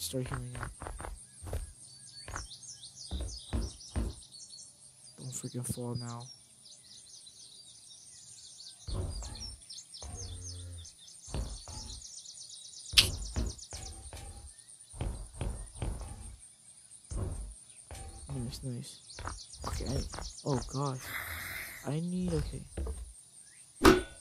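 Footsteps thud on a hard surface.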